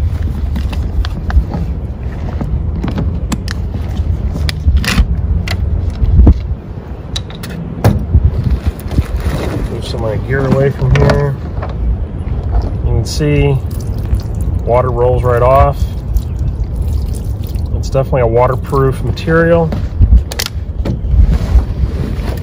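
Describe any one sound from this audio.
A waterproof bag rustles and crinkles as it is handled.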